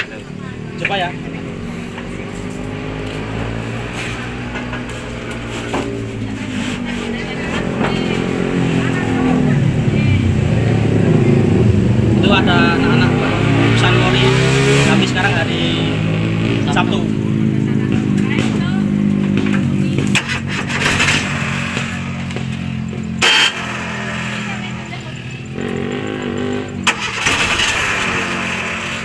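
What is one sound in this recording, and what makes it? A jeep's engine idles, rising and falling in pitch.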